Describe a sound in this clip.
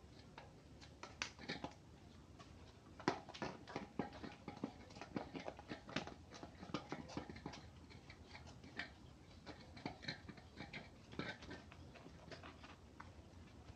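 A tyre lever scrapes and clicks against a bicycle wheel rim.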